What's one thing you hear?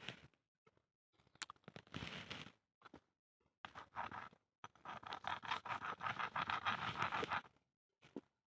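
Hands scrape and rustle through dry soil and small stones close by.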